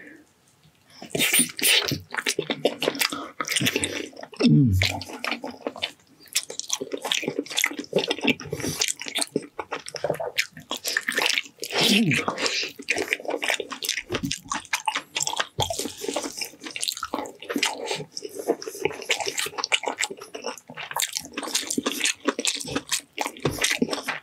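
A man chews loudly and wetly close to a microphone.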